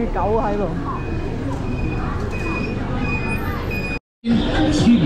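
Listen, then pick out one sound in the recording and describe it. Traffic hums along a busy street.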